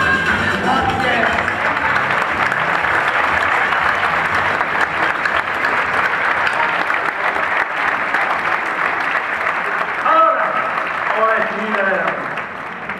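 A crowd claps steadily and loudly in a large hall.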